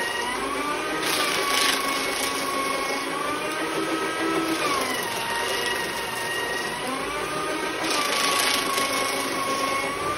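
An electric paper shredder cuts through sheets of paper.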